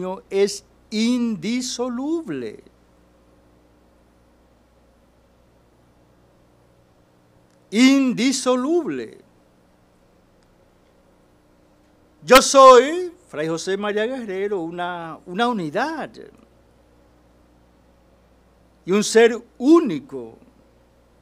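An elderly man speaks calmly into a microphone, pausing often.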